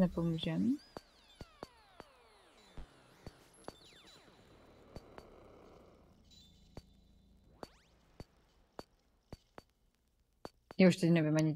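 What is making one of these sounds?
Short electronic clicks and blips sound from a game.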